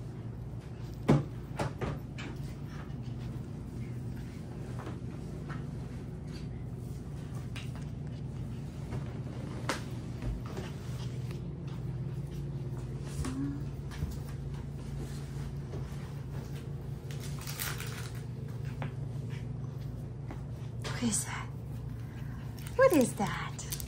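A puppy gives short, high yelps.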